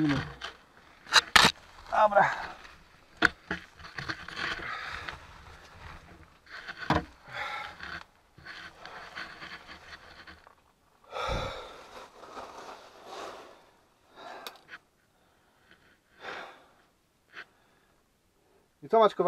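Loose stones and gravel scrape and crunch underfoot.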